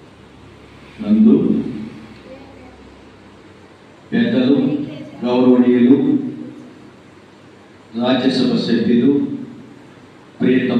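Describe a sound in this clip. A man speaks into a microphone over a loudspeaker, in short bursts with pauses, in an echoing room.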